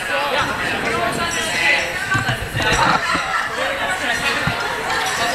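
A crowd of people chatters all around in a large echoing hall.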